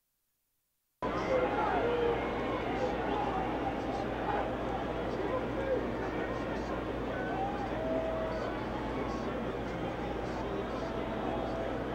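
A stadium crowd murmurs and cheers in a large open space.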